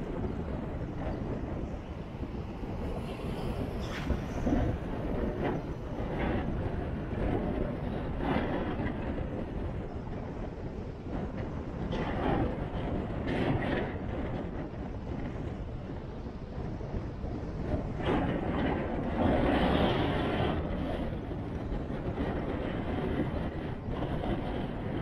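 A large ship's engine rumbles as it passes close by.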